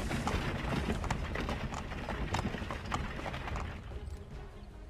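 A horse-drawn cart rolls along with wheels rattling.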